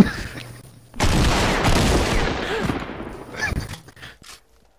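A gun fires with a loud, roaring blast.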